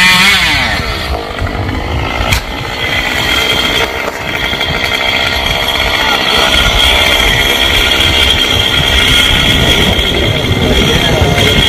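A chainsaw engine runs steadily, idling close by.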